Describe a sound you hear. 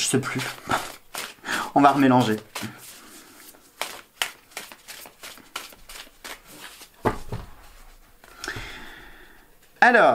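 Cards shuffle and rustle in a man's hands.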